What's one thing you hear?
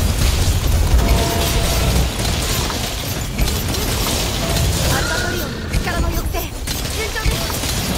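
Blades strike with sharp metallic hits.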